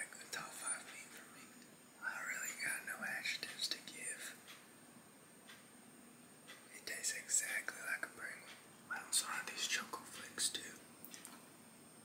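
A young man speaks softly and close up, almost whispering.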